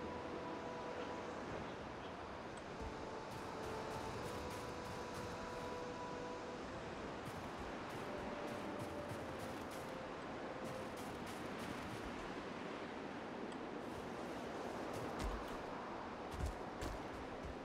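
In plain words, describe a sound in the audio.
A strong wind howls steadily through a snowstorm.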